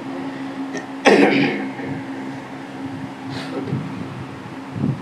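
A man sniffs and sobs close to a microphone.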